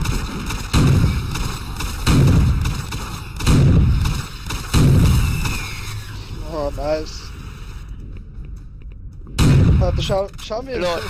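Heavy explosions boom with a deep rumble.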